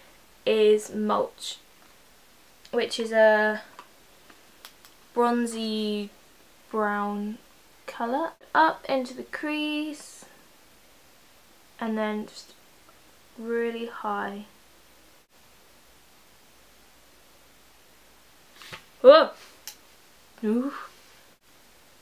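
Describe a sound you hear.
A young woman talks calmly and close to a microphone, in short phrases with pauses.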